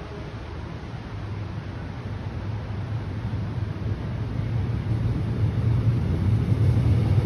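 A train approaches with a low rumble that grows steadily louder.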